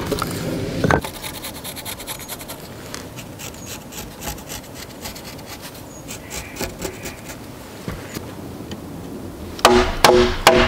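A pencil scratches faintly on wood.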